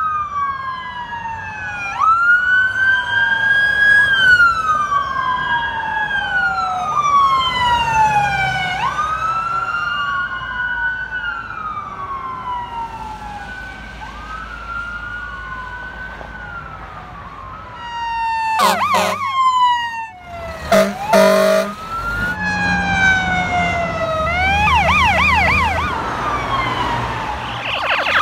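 A siren wails, rising and falling over and over.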